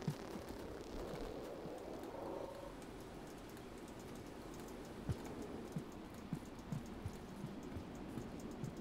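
Soft thuds sound as a small creature jumps and lands.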